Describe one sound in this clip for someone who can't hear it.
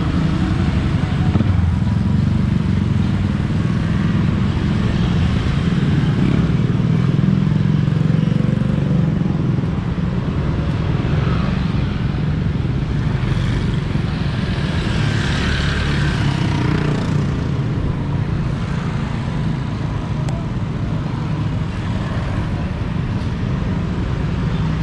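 Other motorbikes buzz past in traffic.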